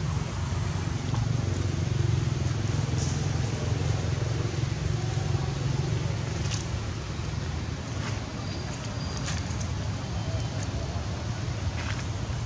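Monkeys shift about and rustle dry leaves on rocky ground.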